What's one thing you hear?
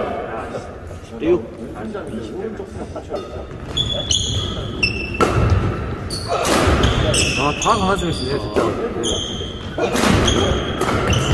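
Rackets strike a shuttlecock in quick rallies, echoing in a large hall.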